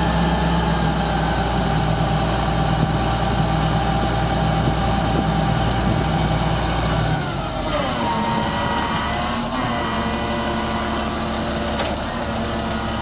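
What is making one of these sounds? A heavy diesel engine rumbles steadily close by.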